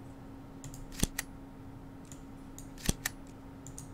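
Menu buttons click sharply a few times.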